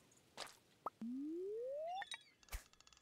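A rising electronic tone sounds from a game as a fishing line reels in.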